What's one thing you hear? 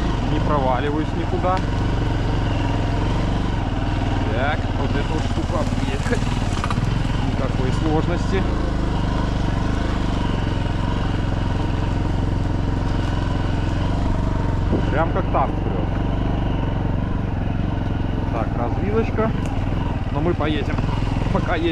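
A motorbike engine rumbles steadily close by.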